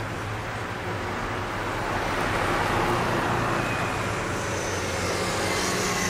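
A car drives past close by on a street outdoors.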